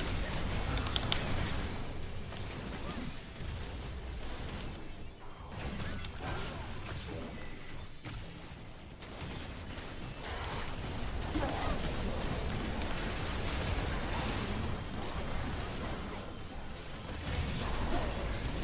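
Game spells crackle and blast during a fight.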